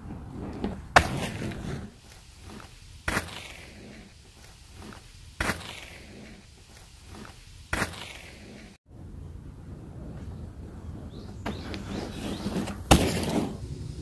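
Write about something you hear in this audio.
A unicycle tyre thumps down hard on packed dirt again and again.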